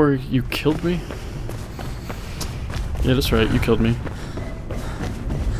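Footsteps clang quickly on a metal walkway.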